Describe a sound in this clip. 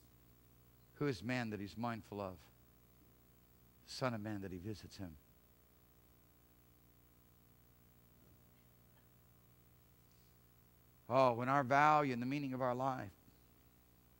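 A man speaks calmly to an audience through a microphone, in a large room, with long pauses.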